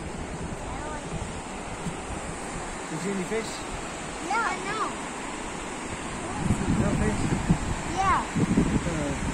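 A young child calls out excitedly nearby.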